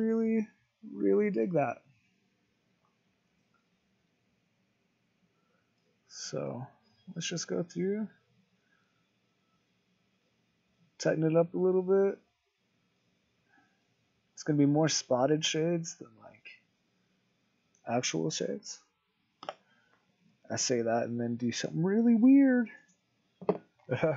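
A man talks calmly into a microphone, close by, in short bursts with pauses.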